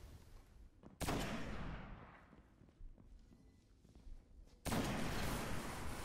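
Heavy gunshots boom with a ringing echo.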